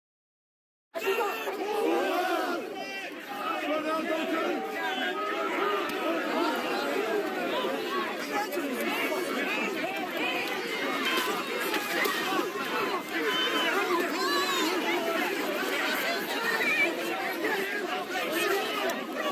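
A large crowd shouts and jeers outdoors.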